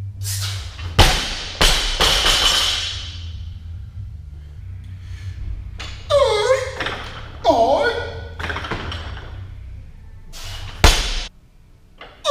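A heavy barbell drops and crashes onto the floor, its weight plates bouncing and clanging.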